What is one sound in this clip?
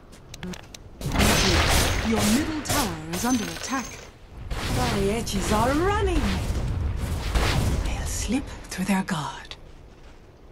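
Magic spells whoosh, crackle and boom in a fight.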